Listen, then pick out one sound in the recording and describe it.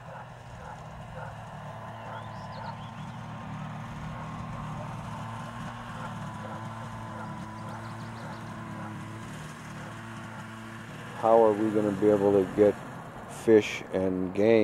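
A snowmobile engine hums steadily as it approaches.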